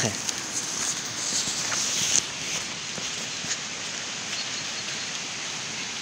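A dog runs through dry leaves, rustling them.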